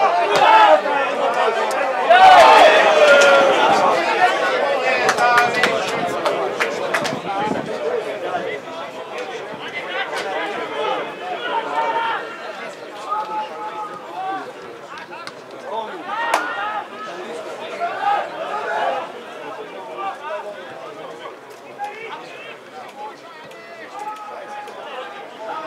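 Men nearby in a small crowd talk and call out loudly.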